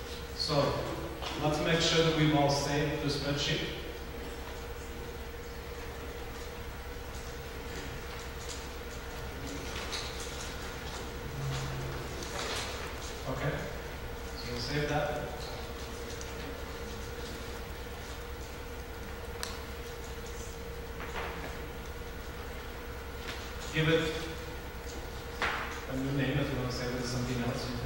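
A man speaks calmly in bursts with pauses.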